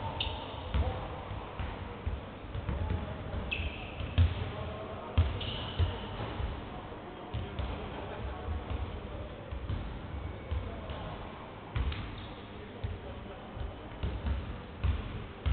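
A basketball bounces with dull thumps on a wooden floor.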